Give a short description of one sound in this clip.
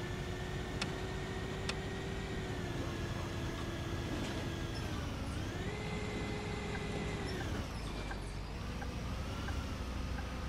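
A bus engine hums steadily, its pitch rising and falling as it changes speed.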